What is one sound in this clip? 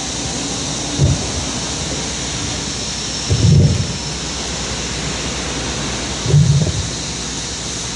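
A microphone thumps as it is handled.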